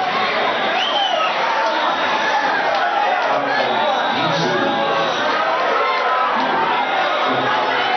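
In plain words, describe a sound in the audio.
A large crowd chatters and cheers loudly.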